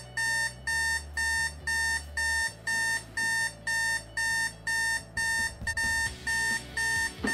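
An alarm beeps in fast, even pulses close by.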